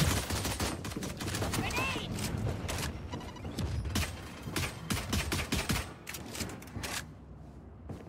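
A pistol fires a rapid string of shots.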